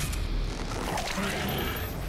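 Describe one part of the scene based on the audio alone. A monster roars up close.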